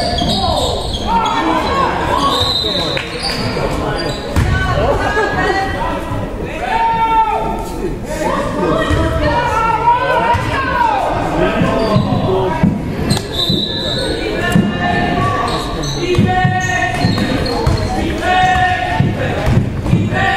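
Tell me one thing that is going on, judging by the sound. Sneakers squeak sharply on a wooden floor in a large echoing gym.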